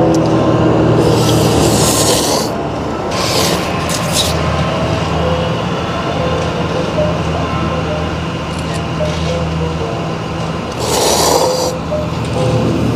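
A young man slurps instant noodles.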